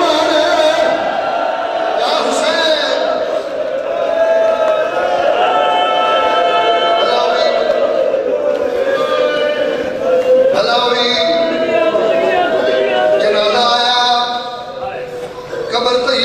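A man recites loudly and passionately into a microphone, heard through a loudspeaker in an echoing hall.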